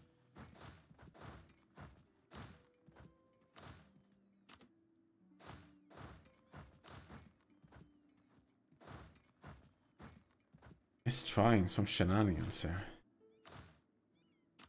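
A young man talks calmly and close through a microphone.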